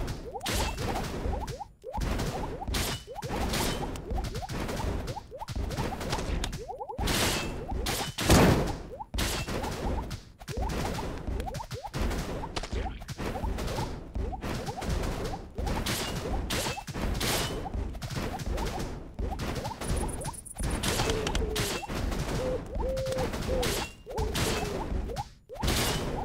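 Fiery blasts burst and thump again and again.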